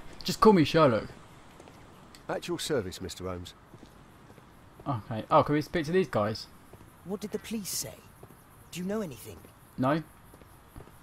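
A man speaks calmly and clearly, with short pauses between phrases.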